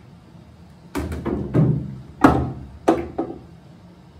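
Pool balls clack sharply against each other.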